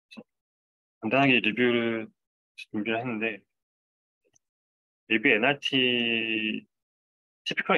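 A young man speaks calmly through a microphone in an online call.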